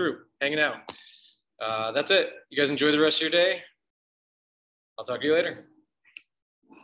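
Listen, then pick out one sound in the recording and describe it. A man talks calmly and close to a microphone, in short phrases with pauses.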